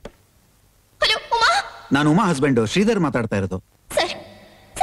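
A man speaks into a telephone with urgency.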